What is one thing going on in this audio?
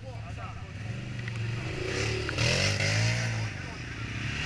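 An engine revs up loudly.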